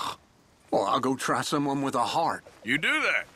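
A man speaks gruffly close by.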